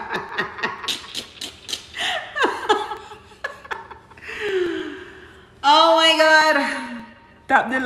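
A young woman sings and speaks expressively into a close microphone.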